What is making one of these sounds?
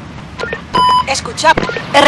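A short bright electronic chime sounds.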